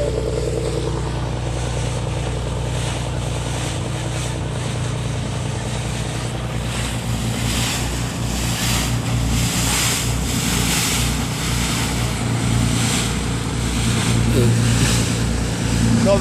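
A small cabin motorboat engine drones as the boat passes under way.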